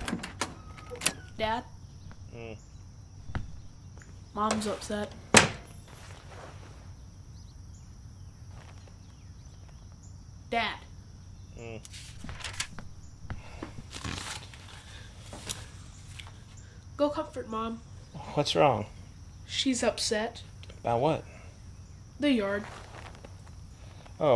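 A young boy speaks close by, in a halting voice.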